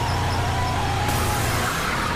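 Car tyres screech on the road.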